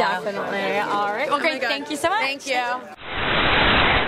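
A young woman speaks cheerfully and close into a microphone.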